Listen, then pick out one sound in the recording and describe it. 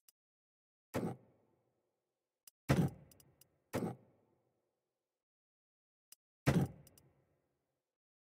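Coins clink in short jingling bursts.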